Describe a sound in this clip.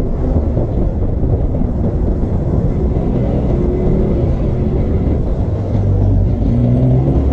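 A motorcycle engine hums steadily close by while riding.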